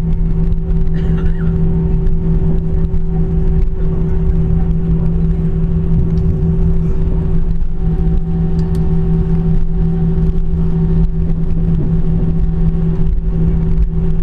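The cabin rumbles low as the airliner rolls over the ground.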